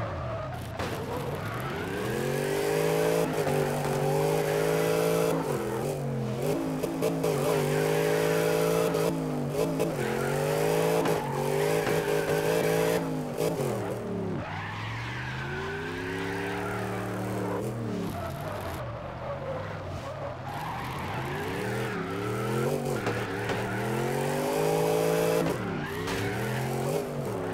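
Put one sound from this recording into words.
Tyres screech on tarmac.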